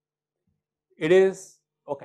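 A young man calls out a question.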